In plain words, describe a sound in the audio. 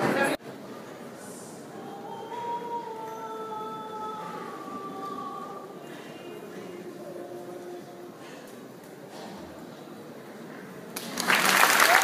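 A man sings in a high voice from a distance, echoing in a large hall.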